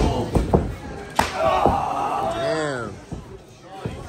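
A metal chair clatters.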